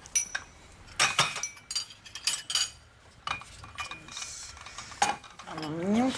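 China cups and saucers clink as they are set down on a table.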